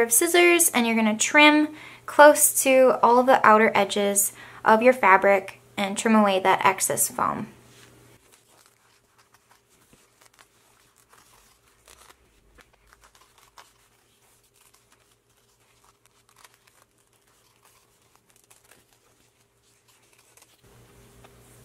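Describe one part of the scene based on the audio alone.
Scissors snip through thick fabric.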